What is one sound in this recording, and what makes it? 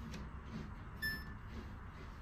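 A washing machine beeps once.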